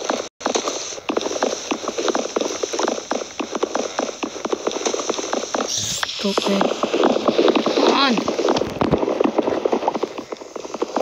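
A young boy talks quickly and animatedly, close to the microphone.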